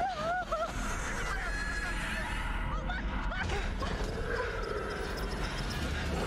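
A young woman shouts in alarm.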